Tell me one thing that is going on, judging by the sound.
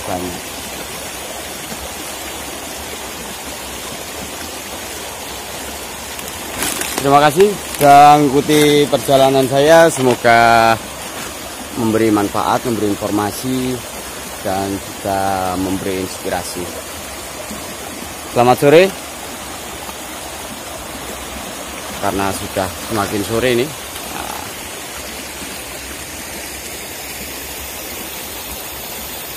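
A shallow stream rushes and splashes over rocks.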